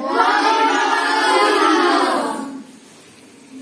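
A group of children sing together loudly and close by.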